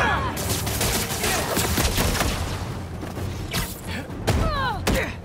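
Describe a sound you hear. Air whooshes past in quick rushes.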